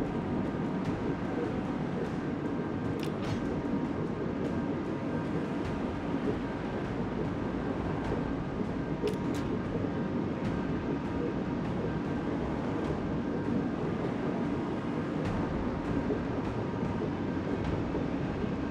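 Waves rush and churn against a ship's hull as it ploughs through the sea.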